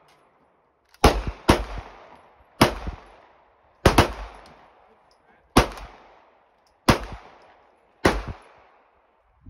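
A rifle fires single loud shots outdoors, each echoing away.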